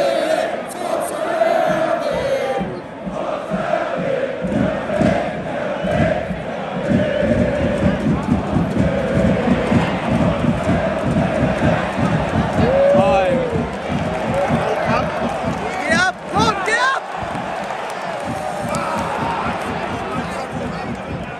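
A large crowd of fans chants and sings loudly outdoors.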